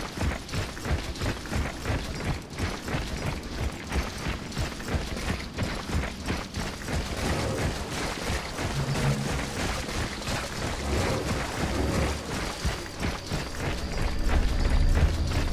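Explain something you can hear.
Metal armour clinks and rattles with each step.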